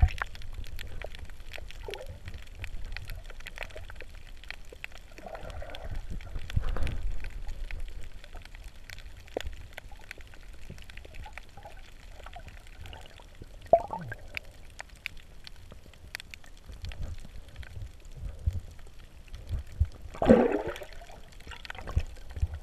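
Water swirls and gurgles, heard muffled from under the surface.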